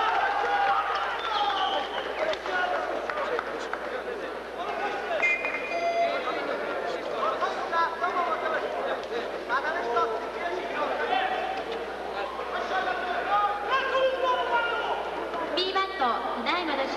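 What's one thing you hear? A crowd of spectators shouts and cheers throughout a large echoing hall.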